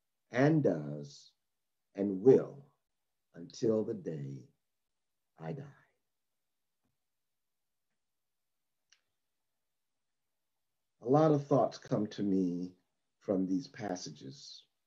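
A middle-aged man reads out calmly over an online call, with pauses.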